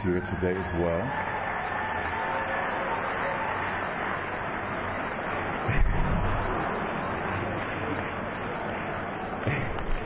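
An audience cheers and applauds.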